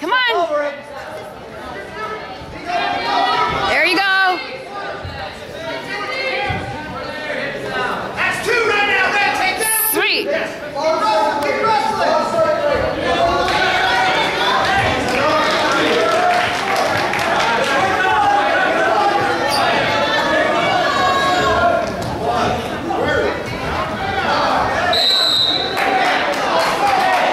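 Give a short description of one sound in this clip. A crowd of spectators shouts and cheers loudly in an echoing gym.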